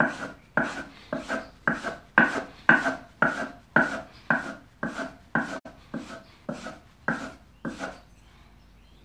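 A blade scrapes on a sharpening stone in quick, steady strokes.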